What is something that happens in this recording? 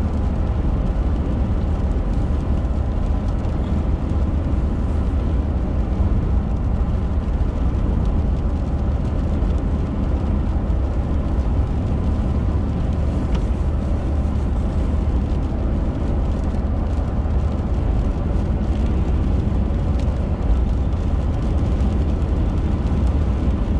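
A car engine hums steadily with a low road rumble from inside the car.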